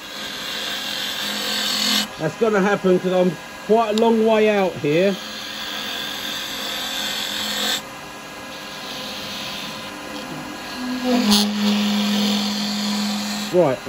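A chisel scrapes and shaves spinning wood on a lathe with a steady hiss.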